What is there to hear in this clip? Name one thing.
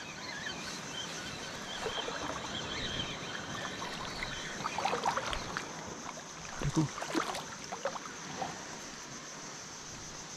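A fishing reel whirs and clicks as it is wound in.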